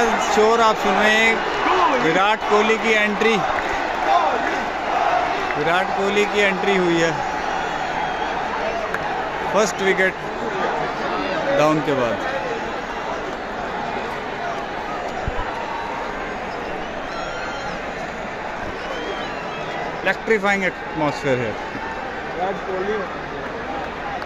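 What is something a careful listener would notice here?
A large crowd roars and cheers steadily in an open stadium.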